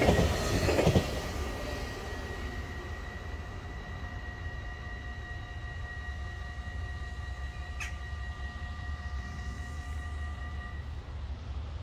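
A train hums as it pulls away and fades into the distance.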